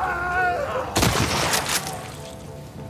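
A gunshot bangs sharply.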